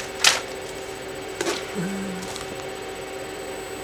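A notebook rustles as it is picked up close by.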